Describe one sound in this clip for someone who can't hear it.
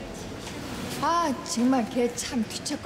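A middle-aged woman speaks up suddenly with feeling, close by.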